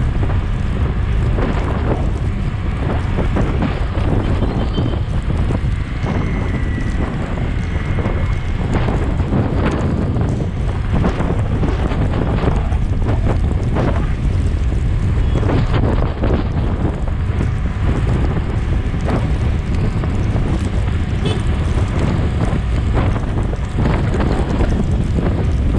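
Wind buffets a microphone on a moving motorcycle.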